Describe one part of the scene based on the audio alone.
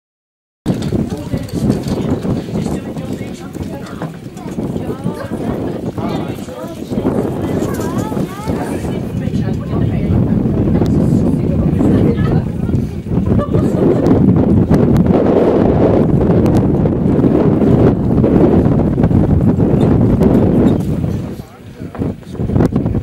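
Wind rumbles loudly across an open field.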